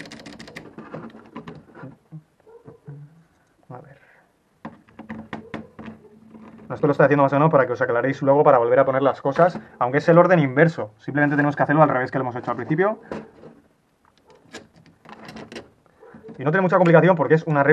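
Small metal and plastic parts click and tap against each other.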